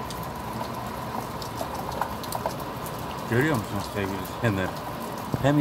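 Heavy rain pours down outdoors with a steady hiss.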